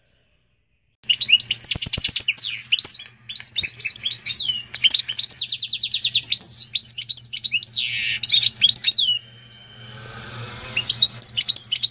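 A goldfinch and canary hybrid sings a loud, fast warbling song.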